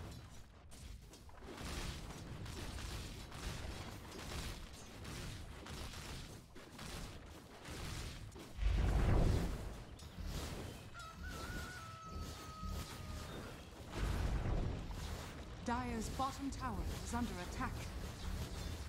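Game fighting effects clash, crackle and boom throughout.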